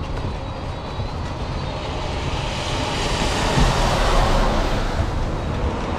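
Tyres hiss on a wet road as a bus passes.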